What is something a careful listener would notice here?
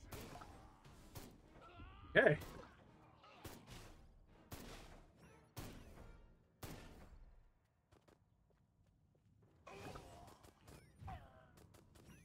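Gunshots and blasts go off in quick bursts.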